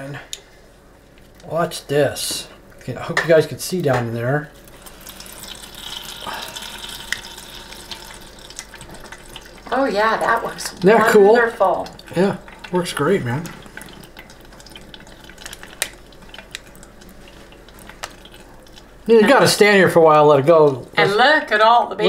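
Oil trickles and splashes softly into a metal pot.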